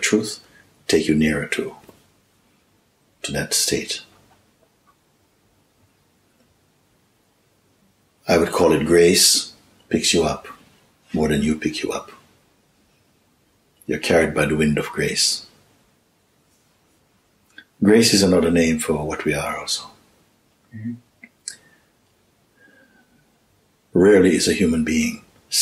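A middle-aged man speaks calmly and thoughtfully close by, with long pauses.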